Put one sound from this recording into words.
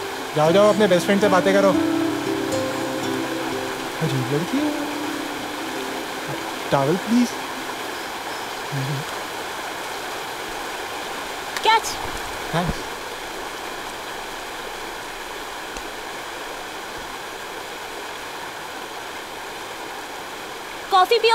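A waterfall rushes and splashes steadily.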